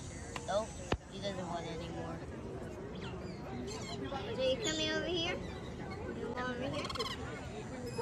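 Parrots chirp and screech close by.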